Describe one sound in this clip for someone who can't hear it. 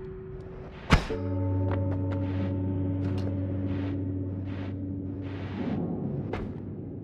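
A low musical chime sounds and slowly rings out.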